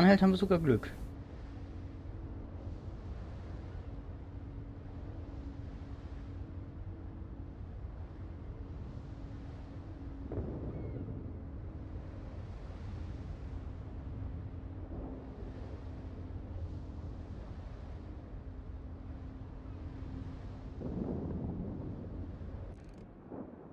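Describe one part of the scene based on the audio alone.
Sea water washes and splashes against a ship's hull.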